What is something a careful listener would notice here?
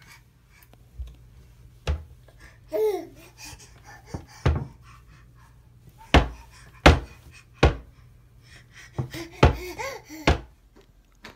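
A small child slaps a door with their hands.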